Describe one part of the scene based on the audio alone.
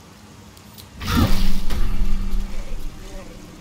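A blade strikes a creature with a heavy impact.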